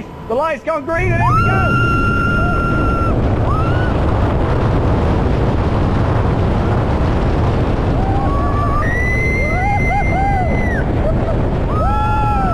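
A roller coaster car rumbles fast along its track.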